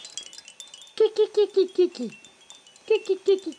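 A baby laughs in short, bright bursts close by.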